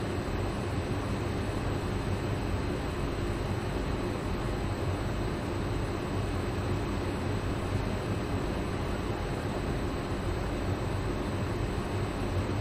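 A stopped electric train hums steadily.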